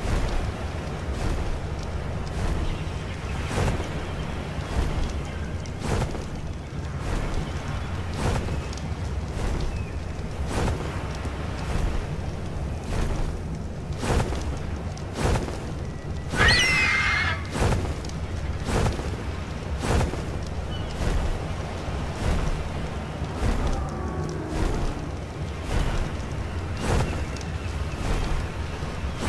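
Large wings flap in steady, rhythmic beats.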